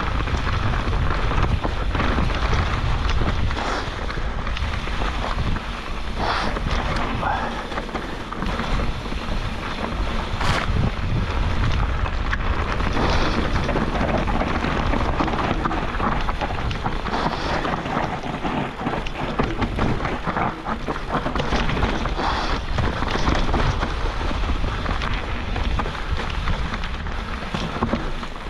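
A bicycle rattles and clanks over bumps.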